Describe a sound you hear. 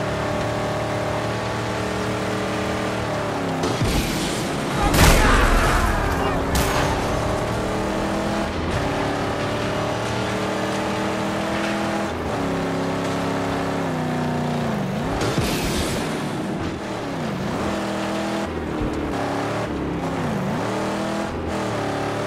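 A car engine roars steadily and shifts through gears.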